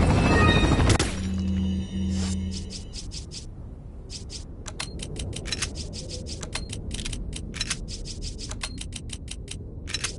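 Menu selection clicks tick rapidly.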